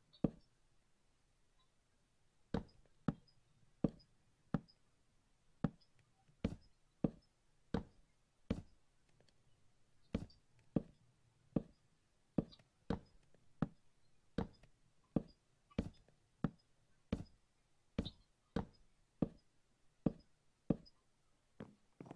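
Wooden blocks are placed one after another with short, hollow knocks.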